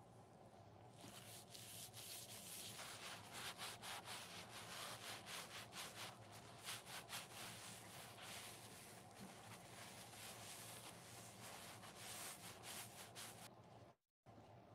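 A dry sponge crackles and scrunches as gloved hands squeeze it.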